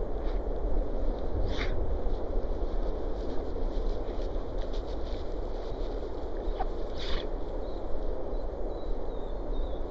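Dog paws patter and rustle through long grass.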